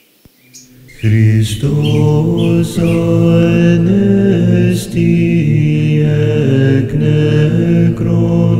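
Men chant slowly together in a large echoing hall.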